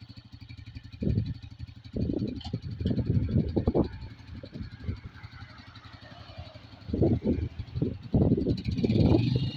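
A motorcycle engine revs up loudly in short bursts.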